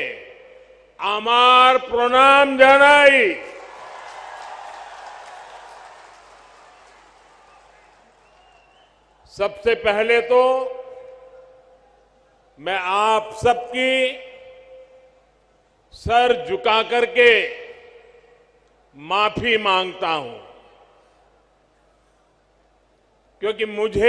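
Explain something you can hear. An elderly man speaks forcefully through a loudspeaker, his voice echoing outdoors.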